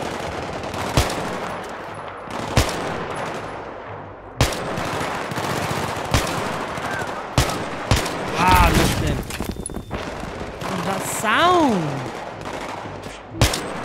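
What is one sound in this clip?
Sniper rifle shots crack loudly, one at a time.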